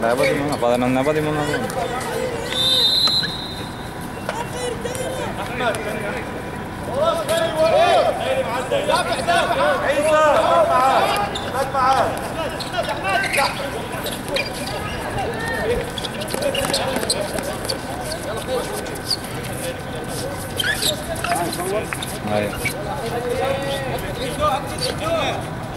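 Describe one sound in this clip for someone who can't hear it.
Sneakers squeak and scuff on the court surface.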